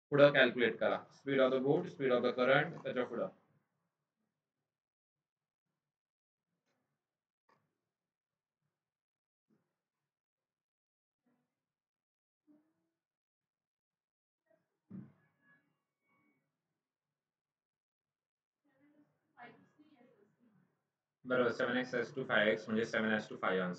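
A man speaks steadily into a close microphone, explaining, with long pauses.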